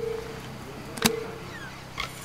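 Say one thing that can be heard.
A briefcase latch clicks open.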